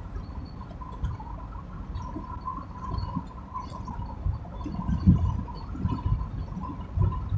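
A car's engine and tyres rumble steadily, heard from inside the car.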